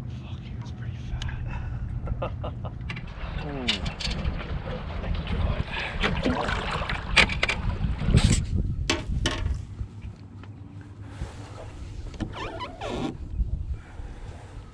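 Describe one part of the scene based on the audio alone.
Wind blows across a microphone outdoors.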